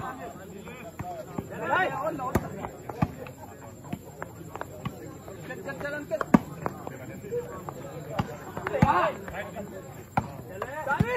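A volleyball is struck with hands, thudding sharply now and then.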